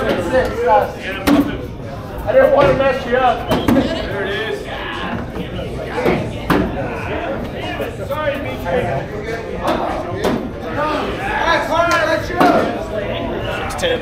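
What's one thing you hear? A crowd of adults chatters in a large echoing room.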